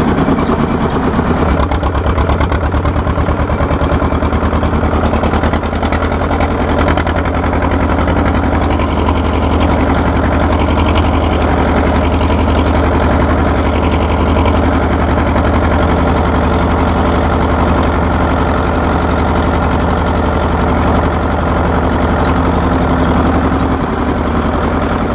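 An old tractor engine chugs loudly and steadily close by.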